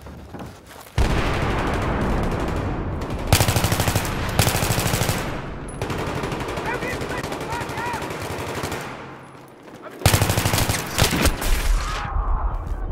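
A rifle fires loud rapid bursts in an echoing underground hall.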